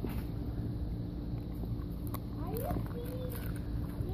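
A dog chews and licks at a treat.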